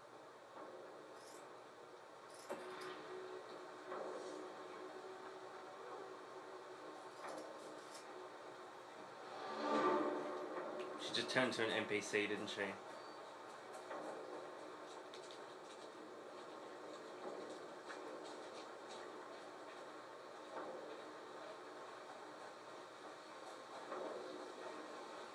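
Game sound plays from a television speaker.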